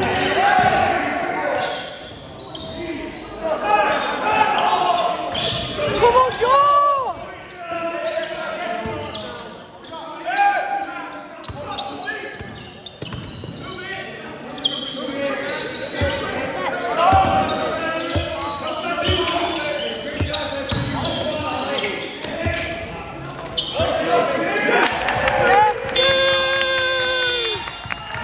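Young men call out and shout to each other.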